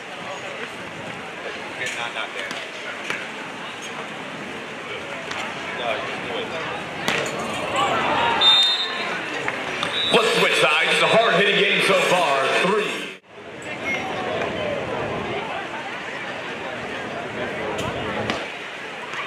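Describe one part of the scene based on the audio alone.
A crowd cheers and murmurs in a large open arena.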